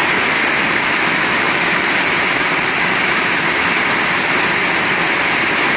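Heavy rain pours down steadily on wet pavement.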